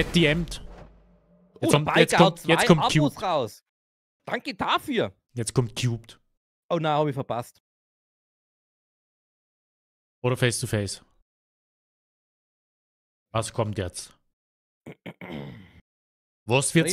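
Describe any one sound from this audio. A man talks with animation into a microphone, in short bursts.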